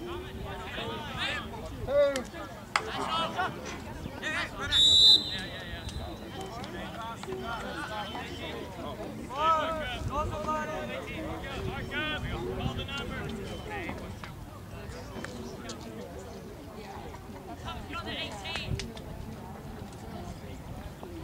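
Young men shout and call out across an open field in the distance.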